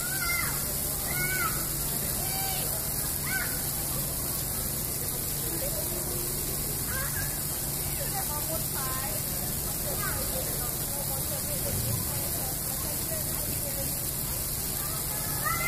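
Small water jets spray and splash steadily.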